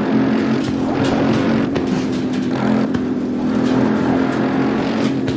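Tyres hum over the track surface.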